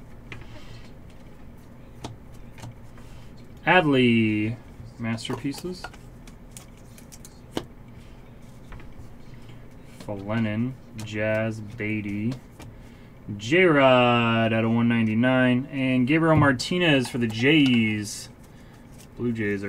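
Trading cards rustle and slide against each other in someone's hands.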